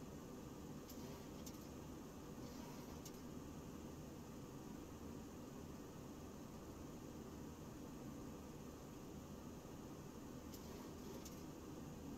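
Jet engines hum steadily, heard from inside a cockpit.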